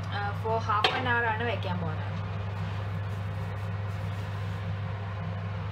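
A metal baking pan scrapes across an oven rack.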